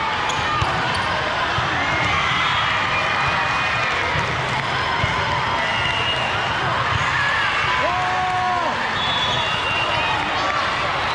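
Many voices echo through a large hall.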